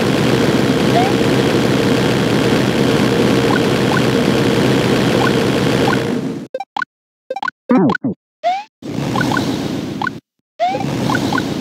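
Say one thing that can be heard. A game character's jump makes short rising chirps.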